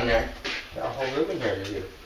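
A dog's claws click on a hard floor.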